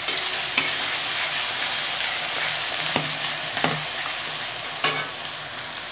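A metal spatula scrapes and stirs in a pan.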